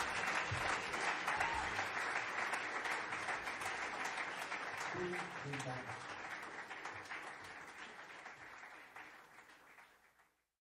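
A jazz band plays live in a room.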